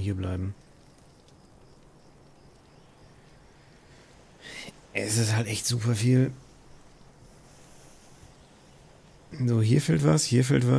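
A man talks calmly and casually into a close microphone, in short bursts.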